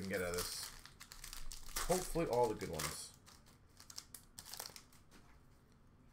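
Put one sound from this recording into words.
A plastic card wrapper crinkles and tears.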